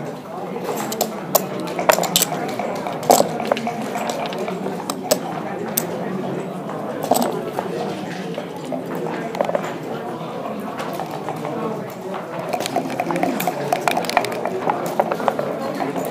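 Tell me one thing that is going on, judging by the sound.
Plastic game checkers click and clack as they are moved on a board.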